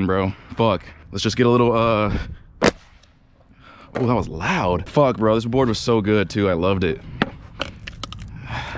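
A skateboard clacks against concrete as a foot snaps it.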